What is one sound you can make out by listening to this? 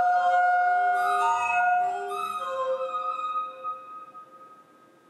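Electronic tones play through loudspeakers and fade away.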